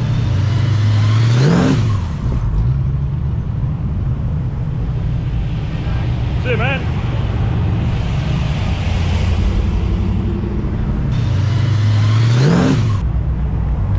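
A car engine revs up sharply as it passes close by.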